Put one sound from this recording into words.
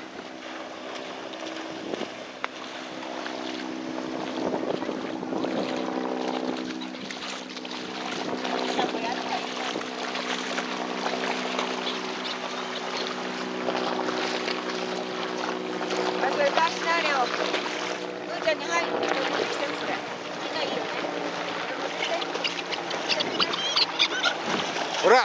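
Dogs splash and wade through shallow water.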